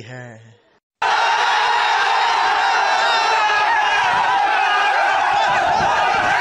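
A crowd of young men cheers and shouts loudly outdoors.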